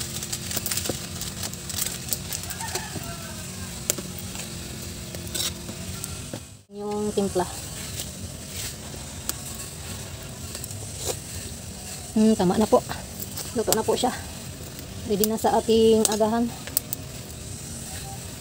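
Soup bubbles softly in a pot.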